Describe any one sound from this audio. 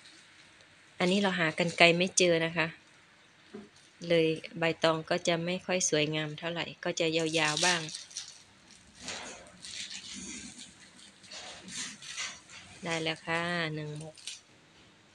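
An older woman talks calmly close by.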